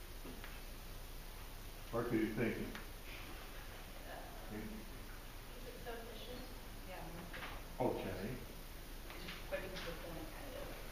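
An elderly man speaks calmly, addressing a room.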